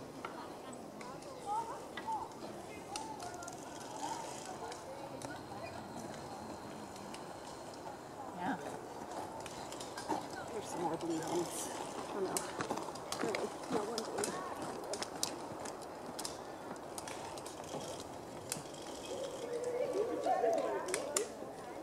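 Young people talk and call out at a distance outdoors.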